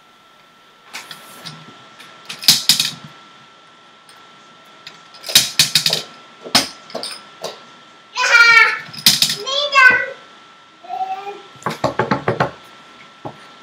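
Plastic discs clatter as they drop into a game frame.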